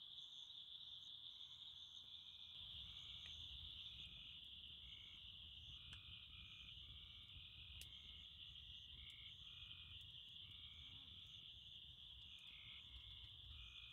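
A campfire crackles and pops nearby.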